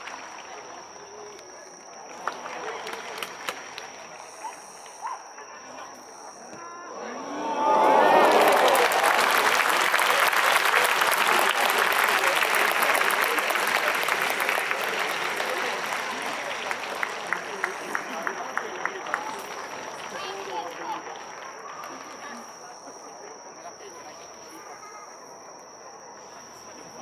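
A large stadium crowd murmurs in the open air.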